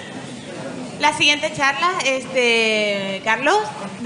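A woman speaks with animation into a microphone over loudspeakers in a large hall.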